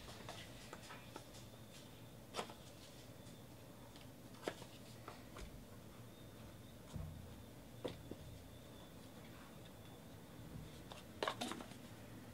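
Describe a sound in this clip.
Hands tear open a card pack with a crinkling rustle.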